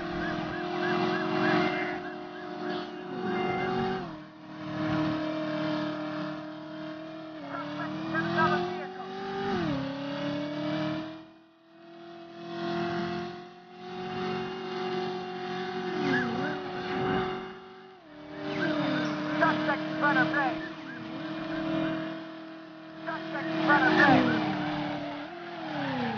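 A car engine roars steadily at high speed, its pitch shifting with each gear change.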